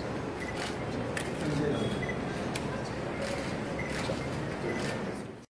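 A group of men talk and murmur nearby.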